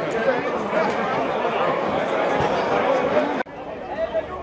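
A crowd chatters loudly.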